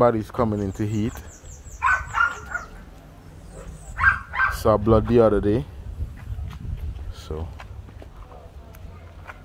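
A dog sniffs at the ground.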